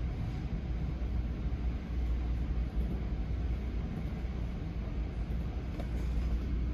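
A vehicle engine rumbles low and steady from inside.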